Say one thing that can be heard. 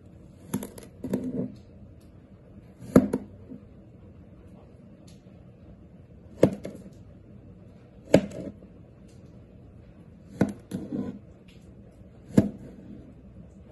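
Dry clay crumbs crackle and crunch under a knife.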